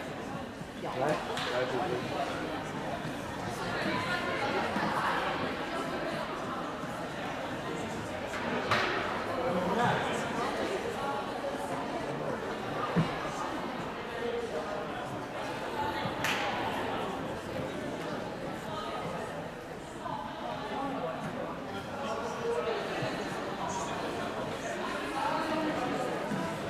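Plastic sticks clack against a ball on the hard floor.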